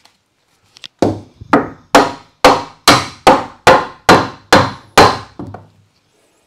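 A hammer drives a nail into wood with quick, sharp, ringing blows.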